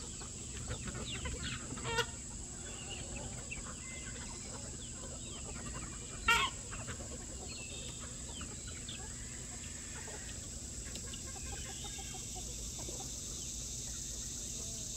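Chickens cluck and peck softly outdoors.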